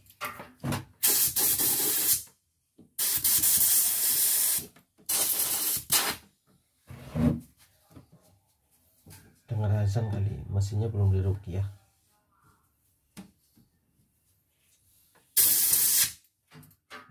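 An air blower hisses loudly in short bursts.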